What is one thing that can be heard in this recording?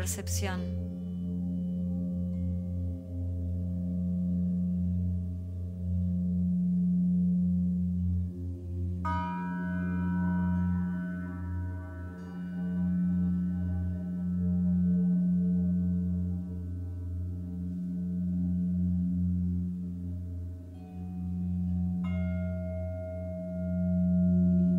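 Metal chimes ring out brightly and shimmer as they fade.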